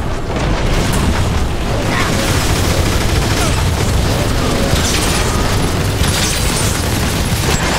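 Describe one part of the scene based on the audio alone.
Heavy guns fire in rapid bursts.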